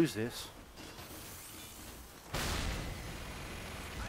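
A gun fires with a loud blast.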